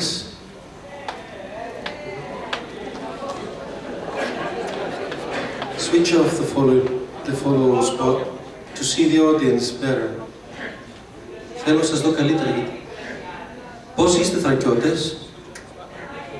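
A young man sings expressively through a microphone.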